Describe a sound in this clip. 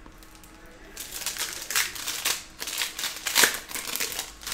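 Foil card packs crinkle as they are handled.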